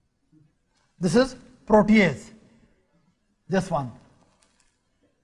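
A man speaks calmly and clearly nearby in short phrases.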